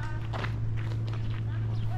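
A woman's footsteps crunch on gravel nearby.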